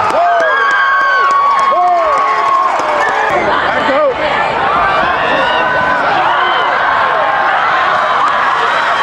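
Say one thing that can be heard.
A large crowd cheers and shouts loudly outdoors.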